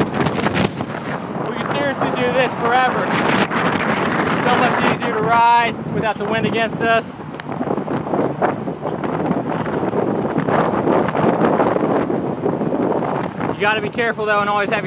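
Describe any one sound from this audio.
Wind rushes loudly over a microphone outdoors.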